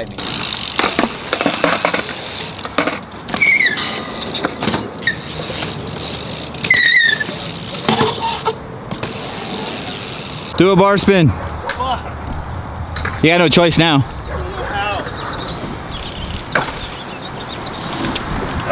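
Bike tyres roll and hum over smooth concrete.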